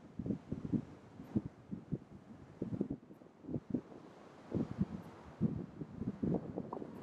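An elephant seal snorts and grunts close by.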